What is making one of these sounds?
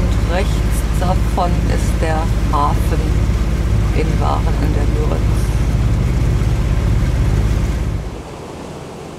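A boat engine rumbles steadily up close.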